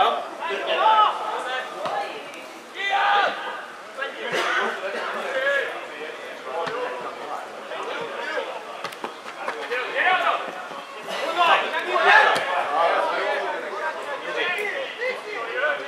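A football thuds when kicked.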